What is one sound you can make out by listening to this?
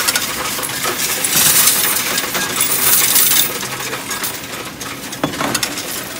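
Coins clink and rattle in a man's hands.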